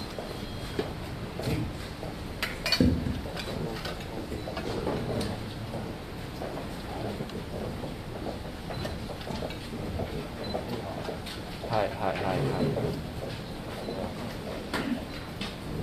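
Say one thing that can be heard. Footsteps and chairs shuffle as people take their seats.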